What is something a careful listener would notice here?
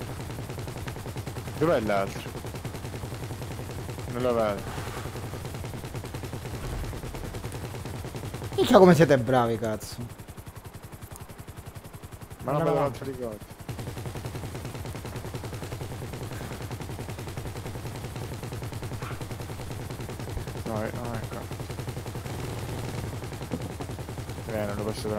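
A helicopter's rotor thumps with a steady low drone.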